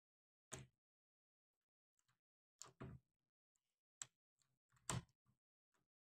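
A doorknob rattles and clicks as a hand turns it.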